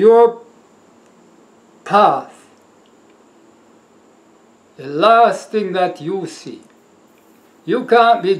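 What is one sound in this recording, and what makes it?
A man speaks calmly and deliberately into a nearby microphone, with pauses between phrases.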